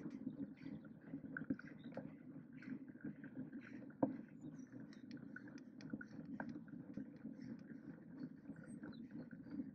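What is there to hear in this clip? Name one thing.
Bicycle tyres roll steadily over smooth asphalt.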